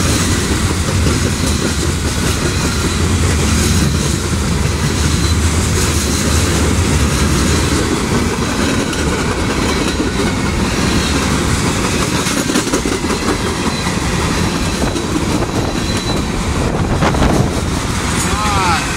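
A freight train rumbles past close by with steady clattering wheels on the rails.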